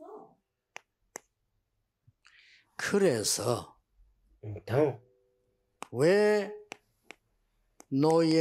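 An older man speaks calmly and emphatically into a close microphone.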